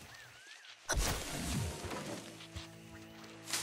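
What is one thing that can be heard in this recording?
Leaves rustle as a bush is picked.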